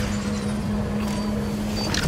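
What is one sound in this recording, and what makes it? Water splashes under running feet.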